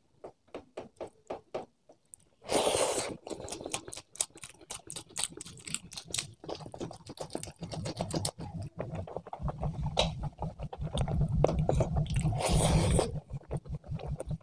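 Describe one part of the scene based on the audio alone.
Fingers squish and mix rice with curry close by.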